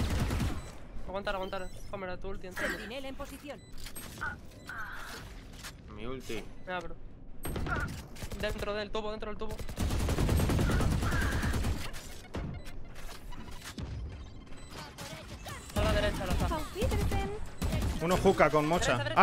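A middle-aged man talks with animation into a microphone.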